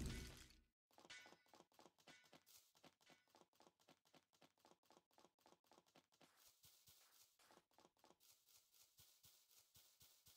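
Quick footsteps patter along a path.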